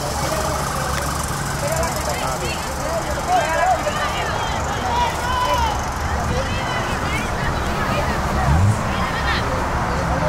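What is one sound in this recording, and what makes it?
Young women call out to each other across an open field.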